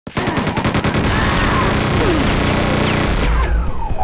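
Rockets explode with loud booms.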